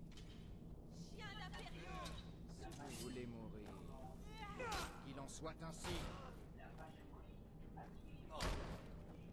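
Men grunt and shout while fighting.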